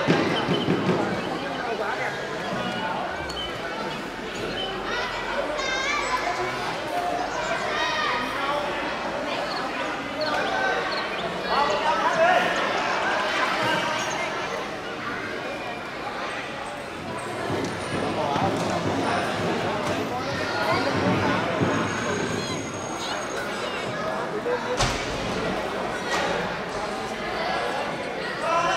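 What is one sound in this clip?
A crowd of children and adults chatters and calls out across a large echoing hall.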